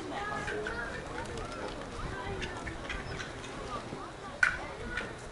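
Men talk and call out across an open field outdoors.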